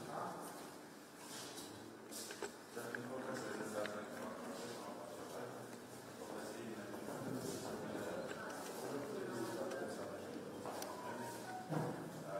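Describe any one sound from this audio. Several men talk at once nearby in a room with a slight echo.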